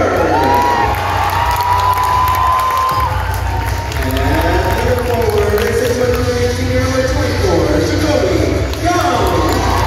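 A large crowd cheers and chatters in a big echoing hall.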